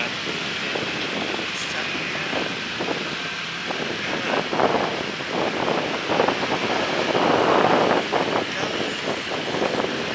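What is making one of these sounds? Street traffic rumbles and hums in the background.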